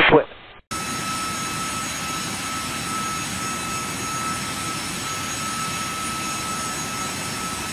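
A jet airliner's engines roar steadily in flight.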